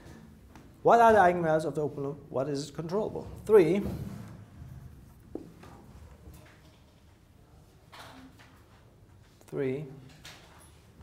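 A man lectures in a room with a slight echo.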